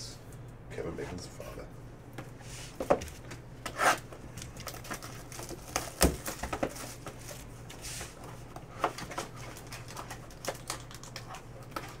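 Cardboard scrapes and taps as a box of cards is opened by hand.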